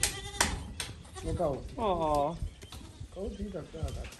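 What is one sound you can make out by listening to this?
Goats bleat nearby.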